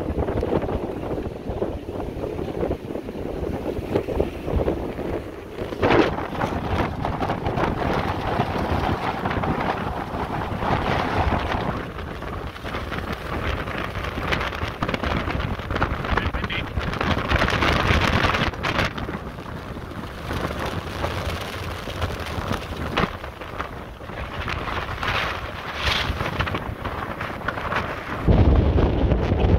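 Strong wind buffets and roars across the microphone outdoors.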